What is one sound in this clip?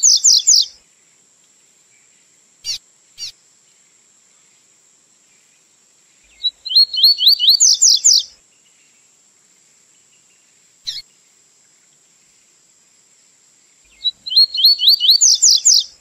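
A small songbird sings loud, rapid whistling phrases close by.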